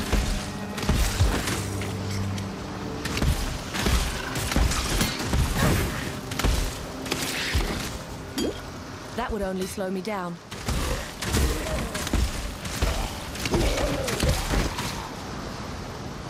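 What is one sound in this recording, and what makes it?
Magic spells crackle and burst in quick blasts.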